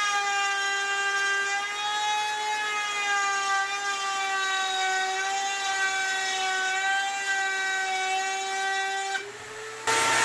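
A table saw whines steadily as it cuts through wood.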